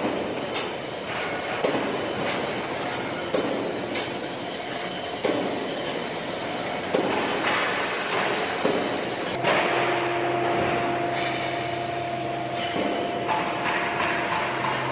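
Metal rattles and clanks inside a running machine.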